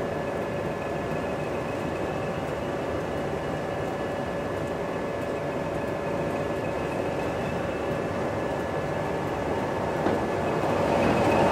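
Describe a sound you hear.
A diesel locomotive rumbles closer along the track.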